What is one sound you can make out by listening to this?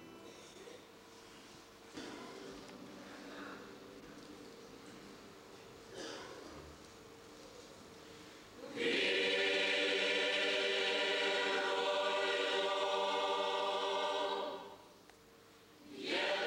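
A large mixed choir sings together, softly at first and then swelling loudly in an echoing hall.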